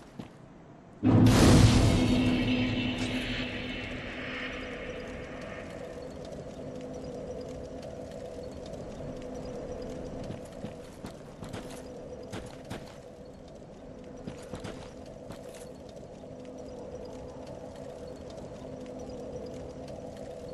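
A fire crackles and hums steadily.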